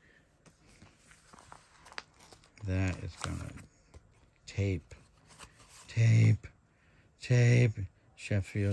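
Trading cards rustle softly against plastic sleeves.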